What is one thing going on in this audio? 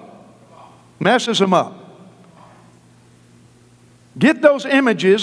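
A middle-aged man preaches with animation through a microphone in a large hall.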